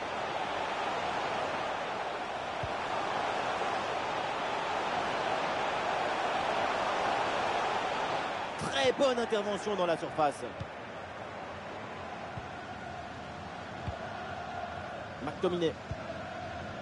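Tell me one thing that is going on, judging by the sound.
A large stadium crowd roars and chants steadily, then quietens a little.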